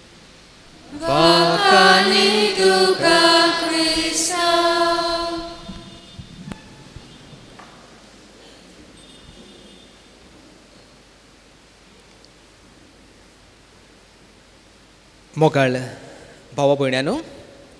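A man chants in a steady singing voice through a microphone, echoing in a large hall.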